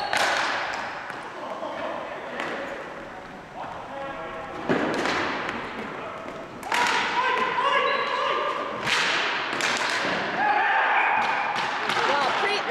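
Ball hockey sticks clack against a ball and a hard floor in a large echoing hall.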